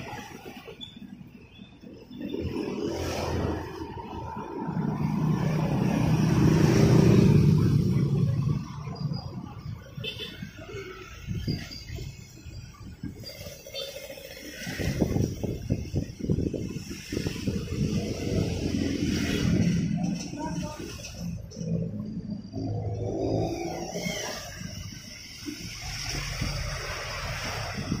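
A knife scrapes and shaves a small hard object.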